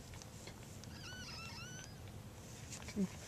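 A tiny newborn animal squeaks faintly.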